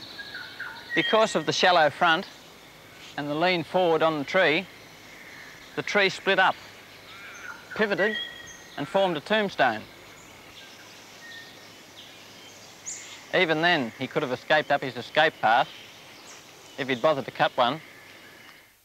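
A man speaks calmly and clearly, close by, with pauses between phrases.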